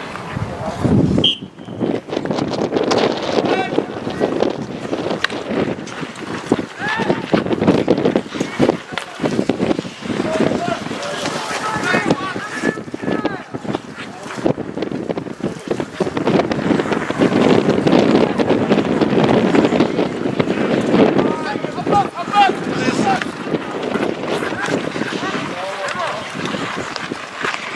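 Players shout to each other across an open outdoor ice rink.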